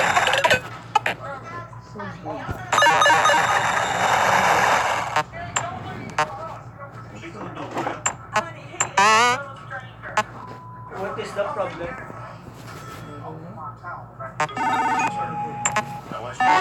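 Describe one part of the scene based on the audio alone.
Electronic game sound effects beep and chime.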